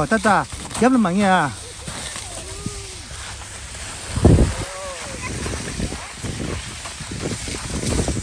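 Skis scrape and slide over snow.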